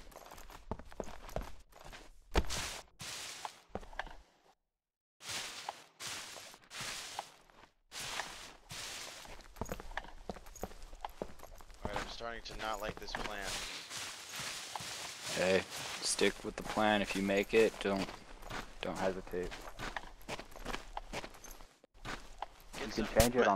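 Footsteps tread on dirt and gravel.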